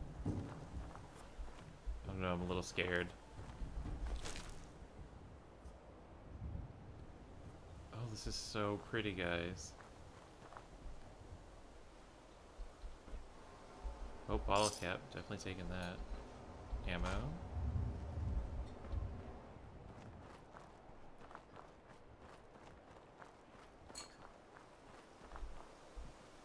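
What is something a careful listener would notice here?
Footsteps crunch on gravel and grass.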